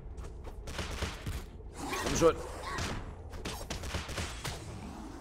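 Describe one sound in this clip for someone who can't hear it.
Sword blows strike and clang in quick bursts.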